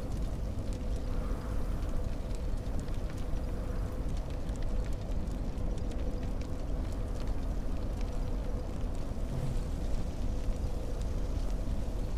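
A fire crackles and pops close by.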